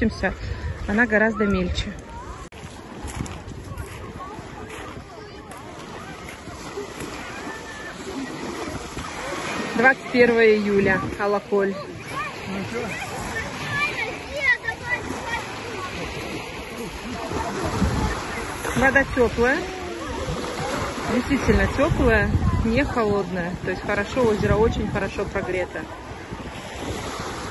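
Children shout and chatter nearby outdoors.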